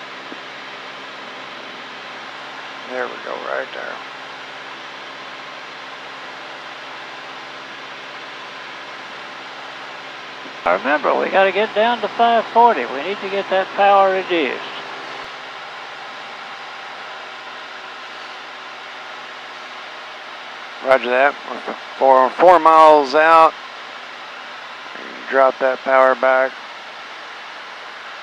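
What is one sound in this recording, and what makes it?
A small plane's engine drones steadily inside the cabin.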